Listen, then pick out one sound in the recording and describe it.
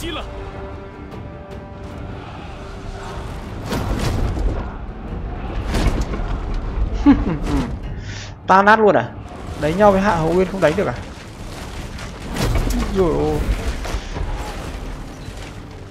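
Weapons clash and thud in a large battle.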